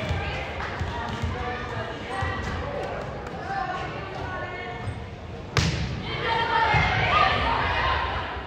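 Players and spectators chatter and call out in an echoing gym.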